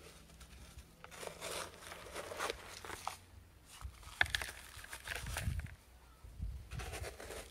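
Potting soil trickles and patters into a plastic pot.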